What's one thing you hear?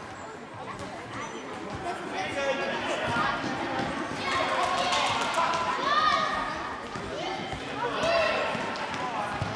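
Shoes squeak on a hall floor.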